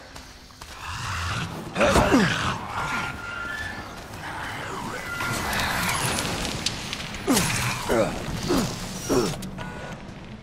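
A monster shrieks and snarls up close.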